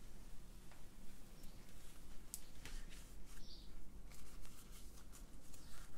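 A paintbrush dabs and brushes softly against canvas.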